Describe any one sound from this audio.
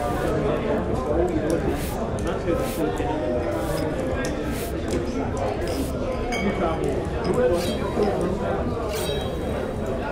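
A crowd of men and women chatter and murmur indoors.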